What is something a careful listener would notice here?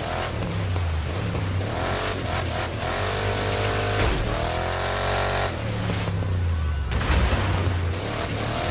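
Tyres crunch and skid over loose dirt.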